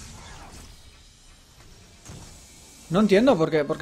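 Magical energy blasts whoosh and crackle.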